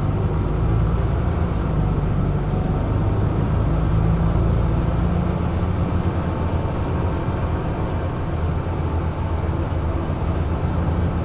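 A vehicle's engine and tyres rumble steadily from inside while driving along a road.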